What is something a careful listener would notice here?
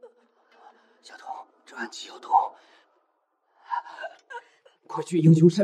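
A young woman speaks softly and urgently.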